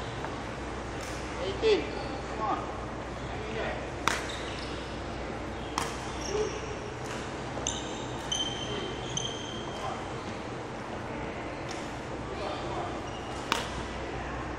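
A racket sharply strikes a shuttlecock in a large echoing hall.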